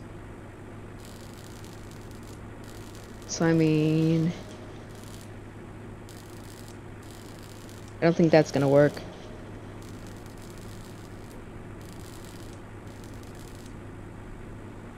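An arc welder crackles and hisses in short bursts.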